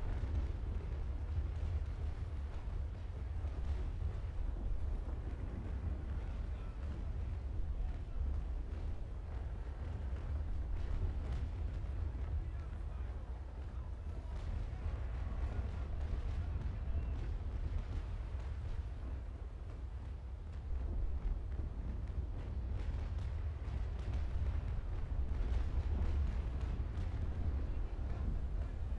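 Sea waves wash and splash steadily against a sailing ship's hull.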